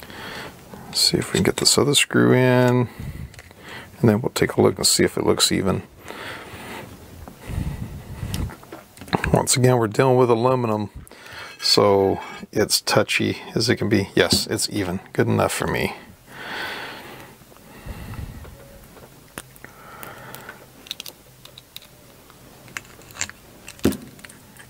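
Small metal parts click and clatter.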